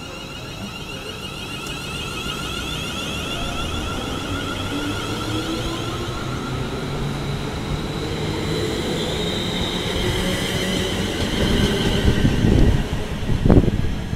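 Train wheels rumble and clatter on the rails, growing louder.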